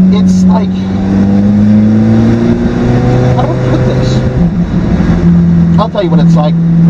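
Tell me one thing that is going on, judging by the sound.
A car engine drones loudly from inside the cabin, its pitch rising then dropping as it shifts gears.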